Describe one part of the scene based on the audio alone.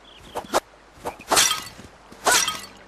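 A smoke bomb bursts with a loud whoosh.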